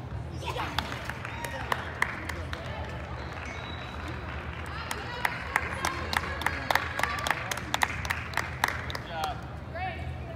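A crowd of spectators claps in a large echoing hall.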